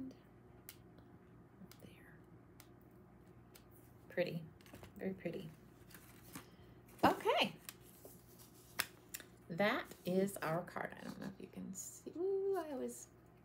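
Paper rustles and taps on a table.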